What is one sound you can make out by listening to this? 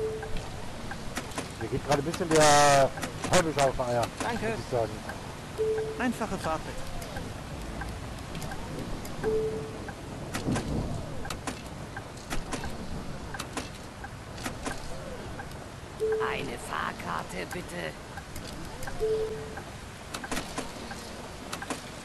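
Coins clink into a change tray.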